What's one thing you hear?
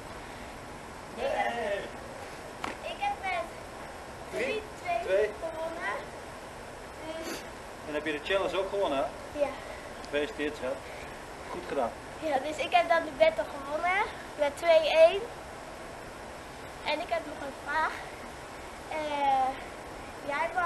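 A young girl speaks and answers nearby.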